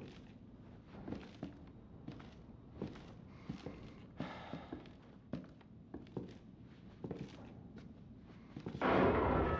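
Footsteps creak on a wooden floor.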